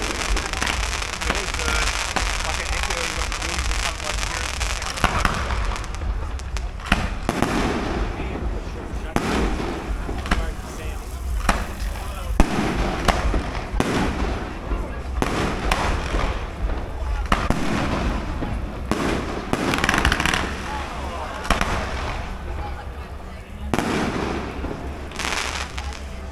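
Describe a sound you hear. Fireworks boom and crackle nearby, echoing outdoors.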